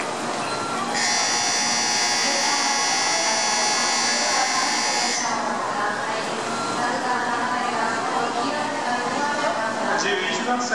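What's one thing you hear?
People chatter around a busy station platform.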